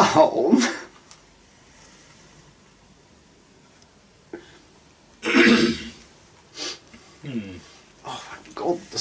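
A man talks and laughs casually nearby.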